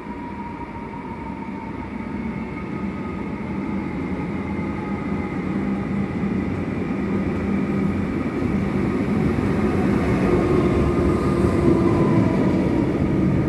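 A train approaches and rumbles closer, growing steadily louder.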